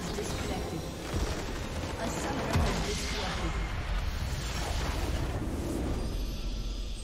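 A game's nexus explodes with a loud crashing blast.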